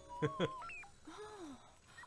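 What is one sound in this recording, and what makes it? A young woman speaks with surprise, close by.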